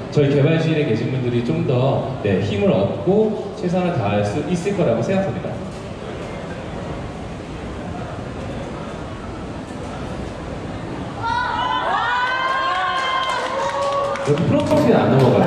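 A young man speaks with animation through a microphone and loudspeakers.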